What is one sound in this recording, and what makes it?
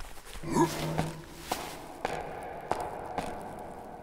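Hands and feet knock on the rungs of a wooden ladder.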